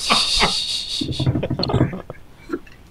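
A man speaks casually over an online call.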